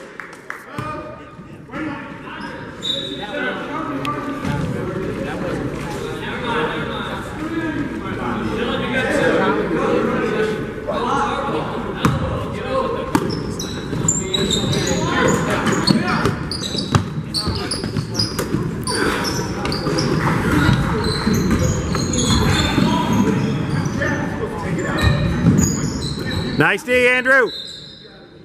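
Sneakers squeak sharply on a hard court in a large echoing gym.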